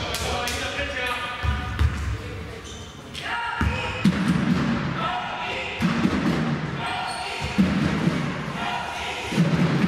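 Basketball shoes squeak sharply on a hard court in a large echoing hall.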